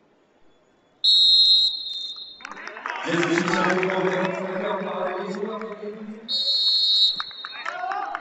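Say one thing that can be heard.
A referee's whistle blows sharply, twice.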